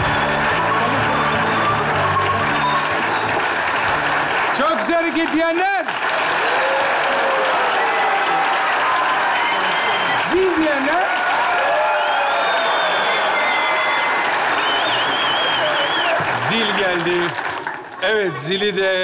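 A large audience applauds and cheers loudly in an echoing hall.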